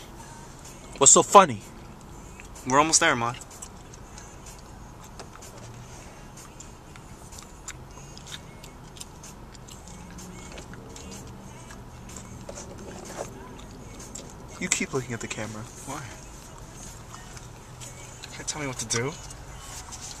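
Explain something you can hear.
A young man sings loudly in short bursts, close by.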